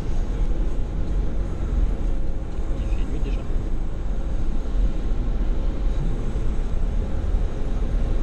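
A car rolls slowly forward.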